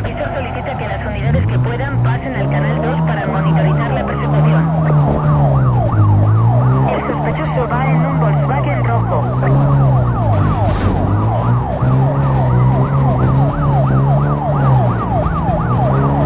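A police siren wails close behind, rising and falling rapidly.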